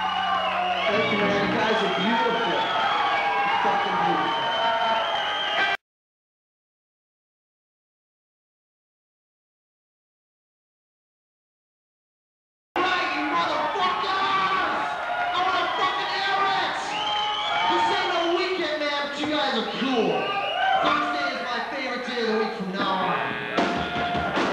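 Drums pound steadily.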